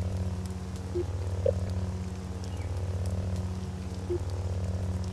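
Short electronic blips sound as menu options change.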